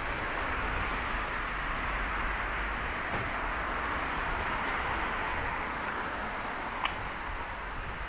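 A car drives past close by and fades away.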